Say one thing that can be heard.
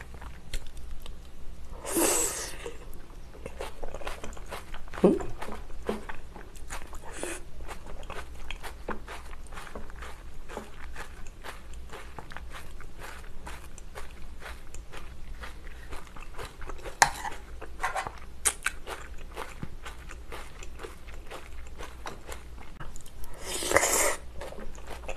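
A young woman chews and slurps noodles close to a microphone.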